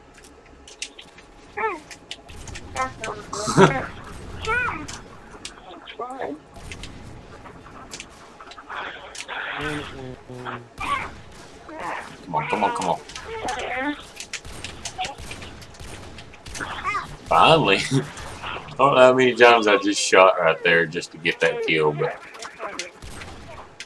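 Rifle shots crack in a video game.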